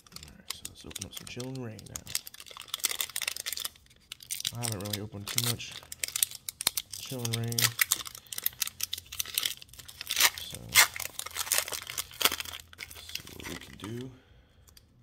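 A foil wrapper crinkles and rustles as it is torn open.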